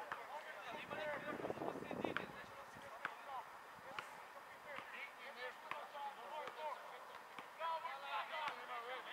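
A football is kicked with dull thuds on an outdoor pitch.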